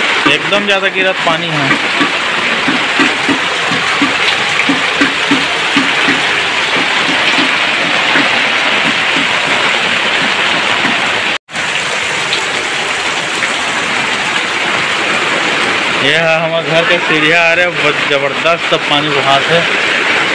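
Water streams and splashes down a flight of steps.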